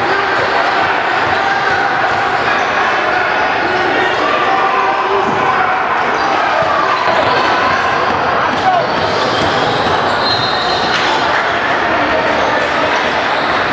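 A crowd chatters throughout a large echoing gym.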